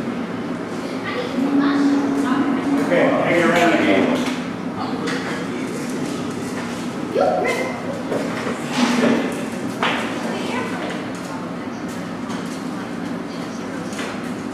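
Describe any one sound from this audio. Children chatter and call out nearby.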